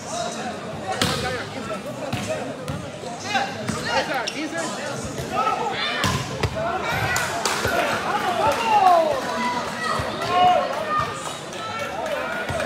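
A ball thuds hard against players and the floor.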